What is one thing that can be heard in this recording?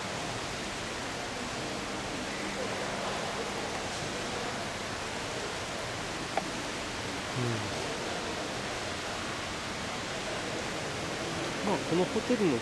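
A tinny Christmas tune plays in a large echoing hall.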